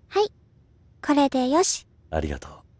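A young girl speaks softly and brightly.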